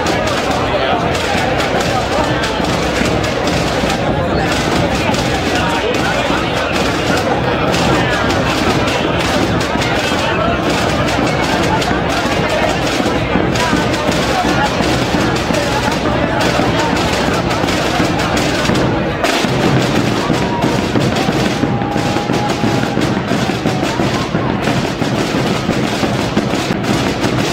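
Music plays loudly over loudspeakers for a group of dancers.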